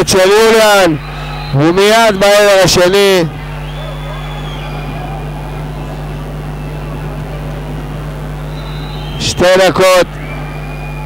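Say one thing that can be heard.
A referee's whistle blows loudly several times in a large echoing hall.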